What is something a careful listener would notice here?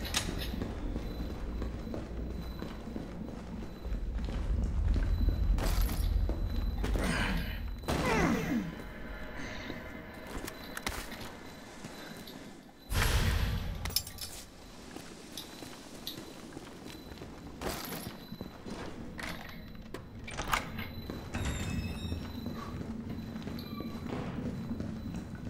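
Footsteps tread steadily on a hard floor and gravel.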